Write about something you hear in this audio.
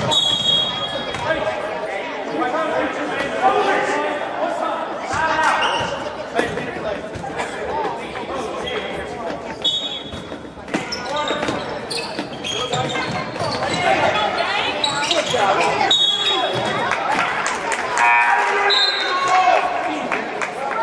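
A crowd chatters and shouts in a large echoing gym.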